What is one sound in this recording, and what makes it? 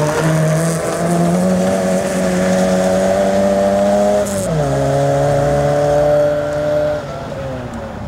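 Tyres crunch and spray over wet gravel.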